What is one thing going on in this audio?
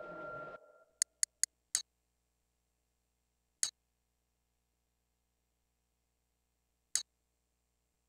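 Short electronic menu clicks sound as a game menu's options change.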